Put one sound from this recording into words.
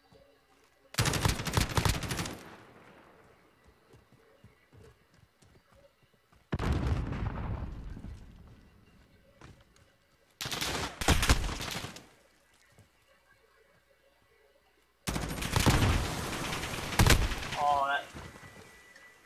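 Automatic rifles fire in rattling bursts.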